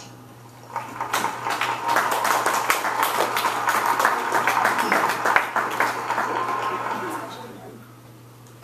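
A large crowd applauds steadily, then fades.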